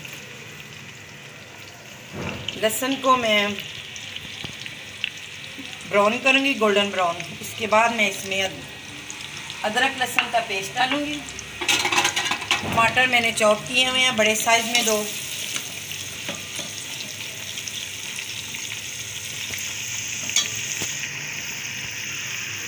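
Onions sizzle in hot oil.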